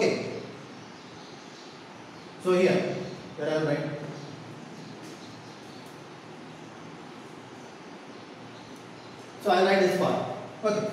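A man speaks loudly in short bursts in an echoing room.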